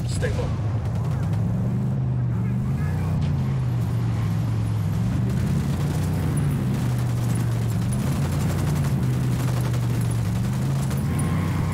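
A vehicle engine drones, revving up and down as it drives.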